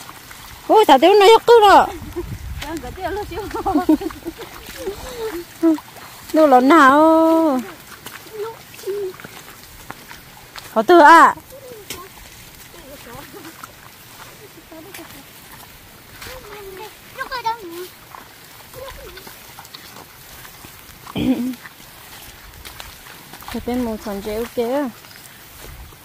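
Young girls talk and call out close by.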